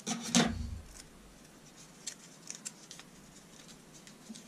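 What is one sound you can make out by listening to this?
Paper crinkles and rustles as fingers fold it.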